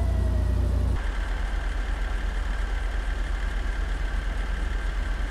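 A heavier engine idles with a rough, throbbing rumble.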